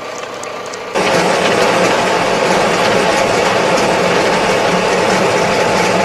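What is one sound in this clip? A tractor engine rumbles steadily while driving.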